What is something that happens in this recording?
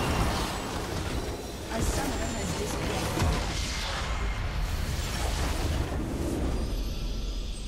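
A loud, rumbling explosion bursts and crackles in a game.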